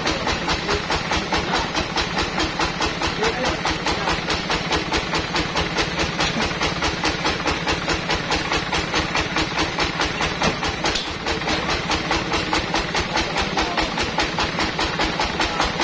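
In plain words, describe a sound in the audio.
A band sawmill runs, cutting through a teak log.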